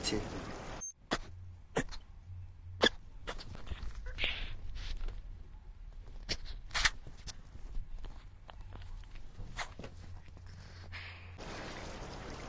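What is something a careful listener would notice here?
A middle-aged man sniffles and sobs quietly.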